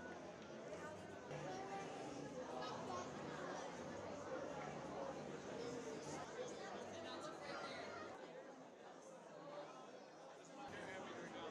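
A crowd of people chatter nearby in a busy, echoing room.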